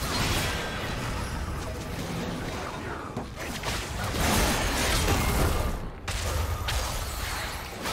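Magic spells blast and crackle in a fast video game fight.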